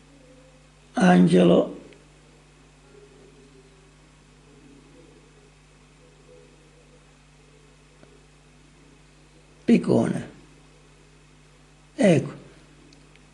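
A woman speaks in short bursts through a phone speaker.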